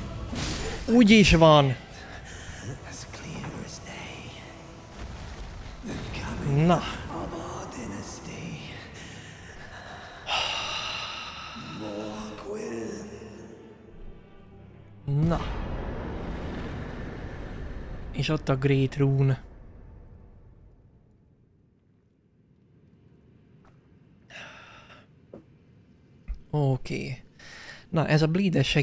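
A young man exclaims with excitement close to a microphone.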